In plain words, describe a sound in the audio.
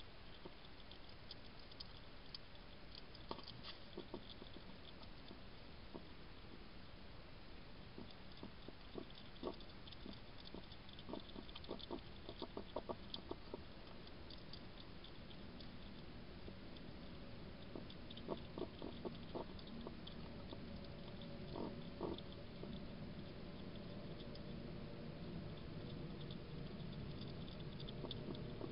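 A hedgehog snuffles and sniffs close by.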